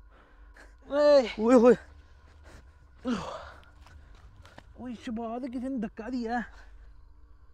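A young man shouts in fear nearby.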